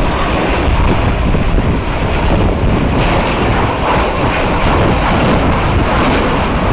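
A jet engine roars loudly overhead in a steady, rumbling rush.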